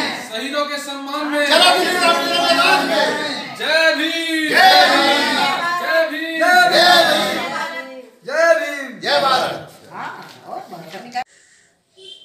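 A young man speaks loudly and with animation close by.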